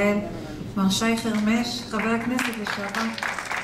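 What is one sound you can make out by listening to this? A young woman speaks through a microphone in an echoing hall.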